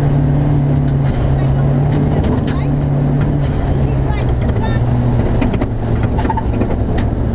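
Gravel and stones clatter against the car's underside.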